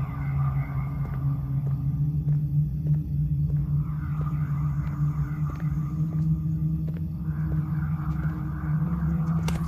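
Footsteps tap on hard ground at a steady walking pace.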